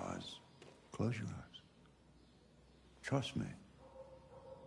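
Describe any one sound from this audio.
A young man speaks softly, close by.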